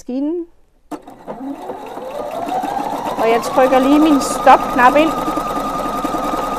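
A sewing machine runs, stitching steadily.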